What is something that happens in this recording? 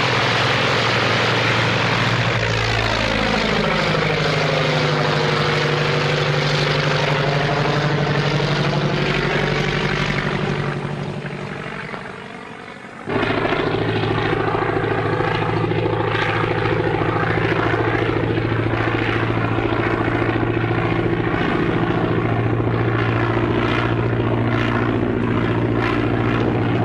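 A propeller plane's engine roars steadily, briefly fading and then surging back.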